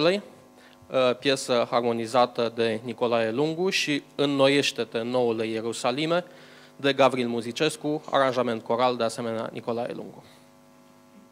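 A man speaks into a microphone over loudspeakers, reading out with animation in an echoing hall.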